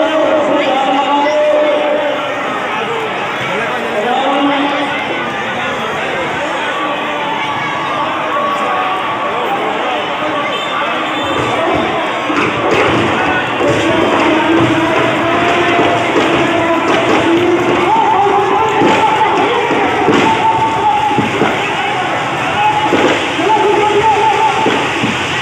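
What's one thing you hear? A large crowd murmurs and chatters outdoors.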